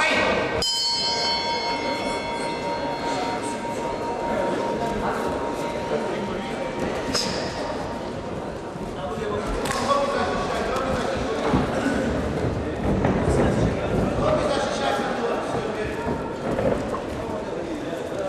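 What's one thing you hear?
Bare feet thud and shuffle on a mat.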